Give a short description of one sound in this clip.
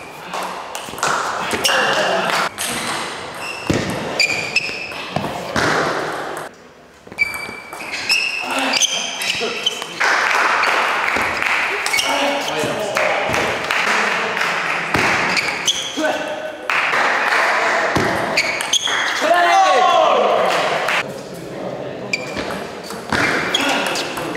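Footsteps squeak on a rubber floor.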